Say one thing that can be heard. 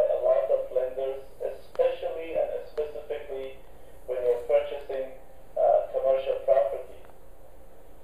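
A man speaks calmly, heard through a loudspeaker in a room.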